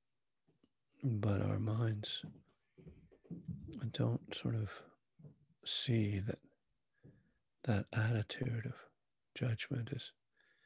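An older man speaks calmly and closely into a microphone.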